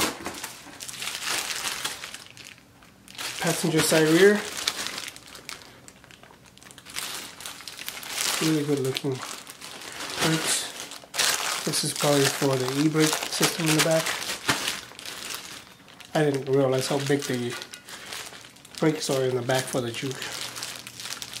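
Plastic wrap crinkles loudly.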